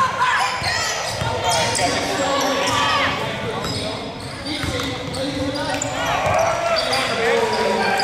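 A crowd of spectators murmurs and calls out in an echoing gym.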